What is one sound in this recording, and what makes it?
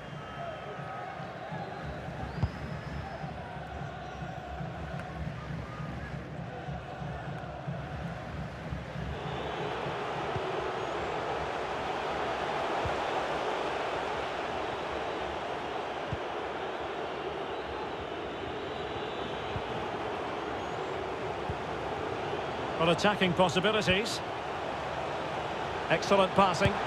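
A large stadium crowd roars and cheers steadily, swelling louder partway through.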